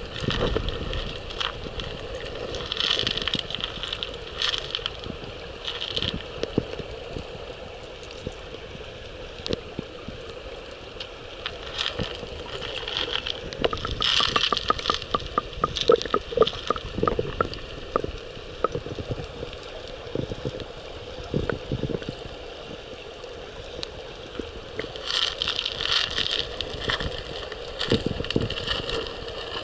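Water gurgles and bubbles, heard from underwater.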